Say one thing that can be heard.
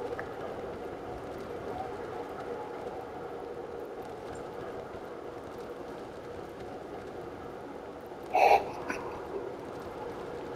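Wind rushes steadily past a gliding parachute.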